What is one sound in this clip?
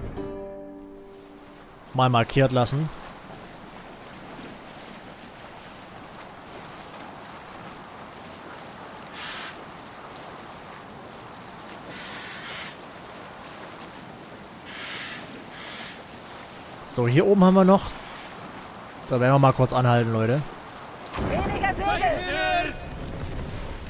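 Water rushes and splashes along the hull of a moving boat.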